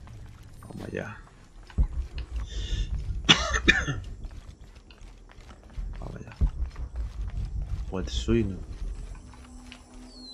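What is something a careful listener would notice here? Footsteps patter on stone and earth as a figure runs.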